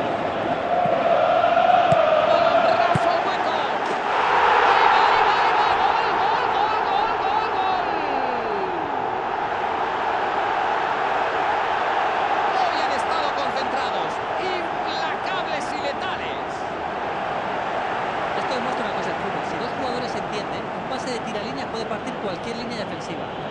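A large stadium crowd roars and cheers loudly, swelling after a goal.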